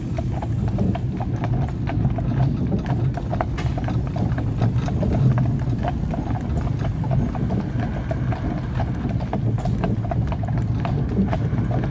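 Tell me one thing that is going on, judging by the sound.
Horses' hooves clop steadily on a paved road.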